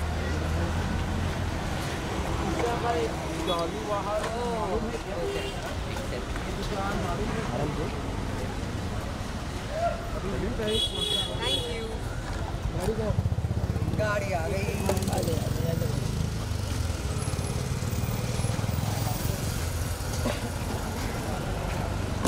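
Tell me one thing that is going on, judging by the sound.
Street traffic hums steadily in the background.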